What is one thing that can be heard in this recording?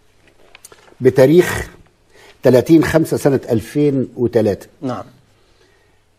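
An elderly man speaks calmly and clearly, close by.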